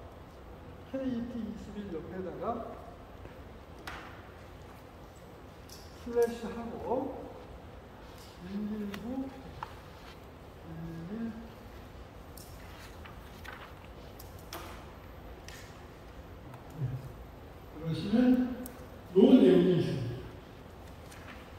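A man speaks into a microphone in an echoing hall, with pauses between phrases.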